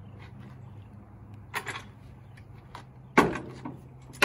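Metal clanks as a floor jack is dragged into place.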